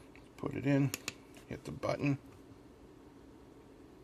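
A small push button clicks.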